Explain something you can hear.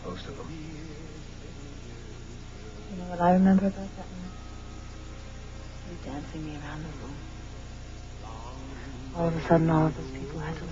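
A man speaks softly and closely, in short phrases.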